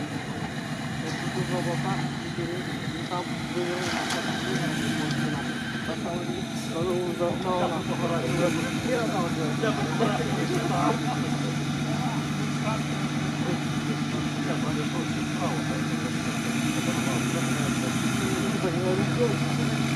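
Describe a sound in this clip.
Muddy water splashes and churns around the vehicle's wheels.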